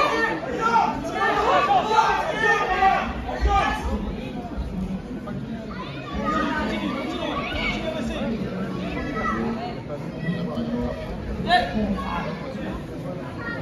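Two judo fighters grapple and scuffle on a mat.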